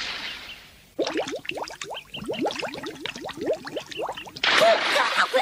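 Bubbles gurgle quickly underwater.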